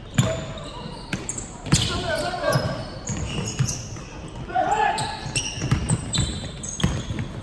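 A basketball bounces on a wooden floor in a large echoing hall.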